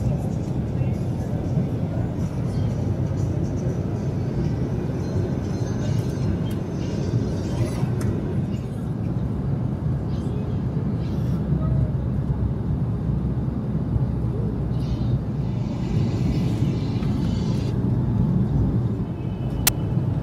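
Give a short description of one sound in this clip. Paper pamphlets rustle as they are pulled out and handled.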